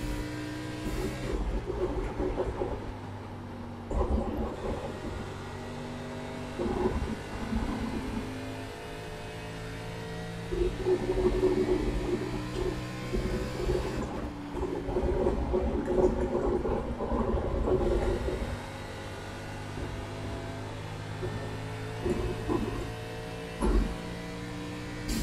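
A race car engine drones steadily at high revs.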